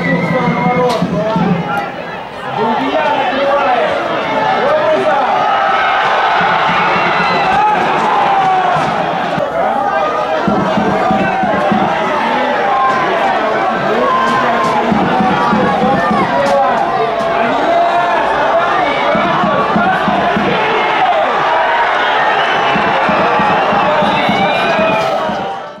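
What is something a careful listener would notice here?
A crowd of fans chants and sings loudly in the stands.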